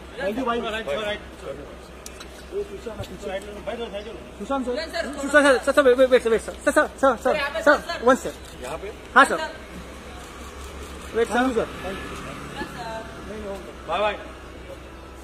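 Several men talk loudly and call out close by.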